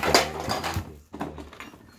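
A cardboard box scrapes and thumps as it is moved.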